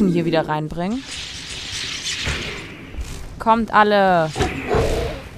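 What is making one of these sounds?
A magic blast crackles and hisses.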